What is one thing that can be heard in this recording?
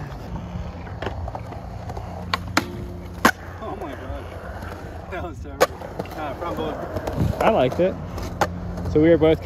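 A skateboard clacks sharply against a metal rail and the ground.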